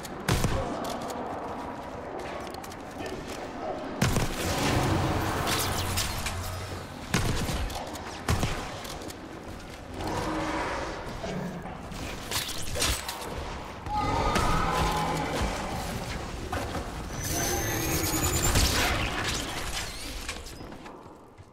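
Gunshots crack rapidly in a game.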